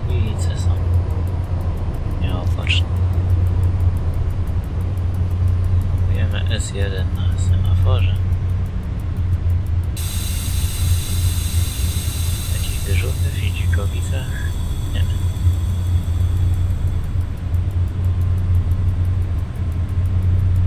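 A train's engine hums low and steady.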